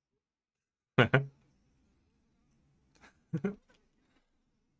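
A man laughs in short bursts close to a microphone.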